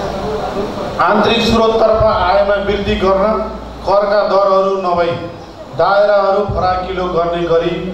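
A man speaks steadily into a microphone, heard through loudspeakers in a large echoing hall.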